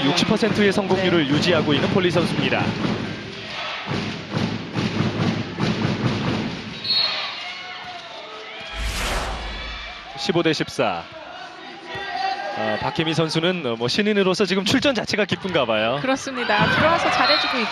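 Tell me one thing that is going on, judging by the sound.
A crowd cheers in a large echoing hall.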